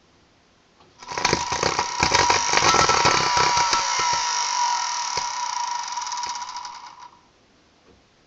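An electric motor spins up with a loud, high whine and then winds down.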